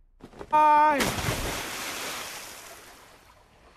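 Water splashes loudly as something falls in.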